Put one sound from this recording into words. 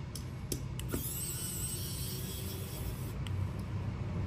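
A small electric screwdriver whirs briefly.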